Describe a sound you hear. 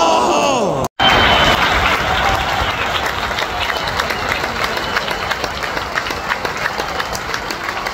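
A large crowd claps and cheers.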